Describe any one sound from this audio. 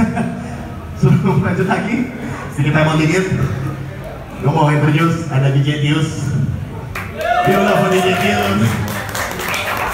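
A young man sings into a microphone through loudspeakers.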